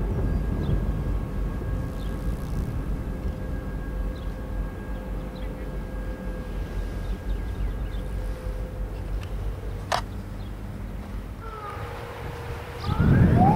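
A diesel freight locomotive rumbles past in the distance.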